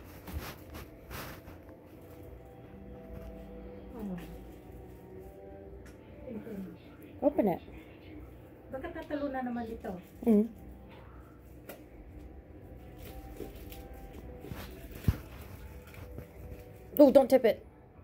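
Plastic wrapping crinkles as hands handle a small package.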